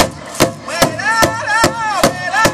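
Men sing loudly together in a high, wavering chant.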